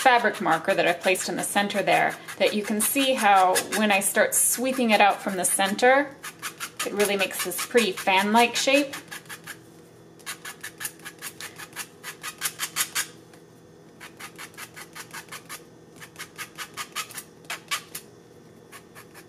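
A stiff brush dabs rapidly against paper.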